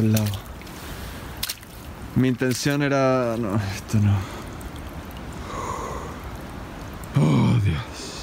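Water trickles along a muddy ditch.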